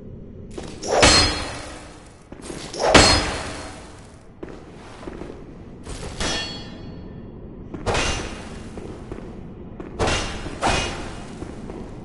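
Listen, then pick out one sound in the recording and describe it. Loud heavy blows crash several times with a ringing echo.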